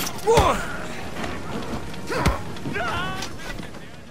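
Blows and weapons clash in a scuffle.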